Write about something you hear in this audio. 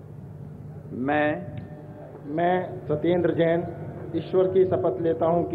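A man speaks into a microphone, reading out solemnly over loudspeakers outdoors.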